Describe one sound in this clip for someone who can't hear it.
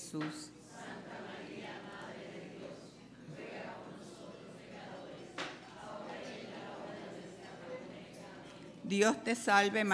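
A congregation murmurs prayers together in a large echoing hall.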